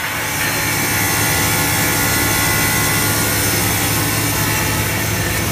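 A machine motor hums steadily.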